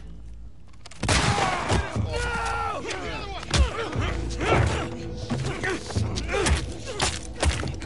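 Men scuffle and thud in a sudden, violent struggle.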